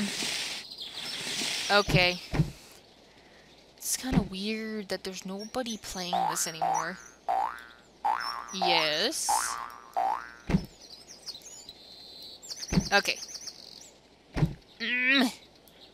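Playful cartoon sound effects boing and chime.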